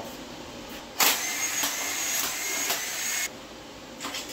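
An air impact wrench whirs loudly in short bursts.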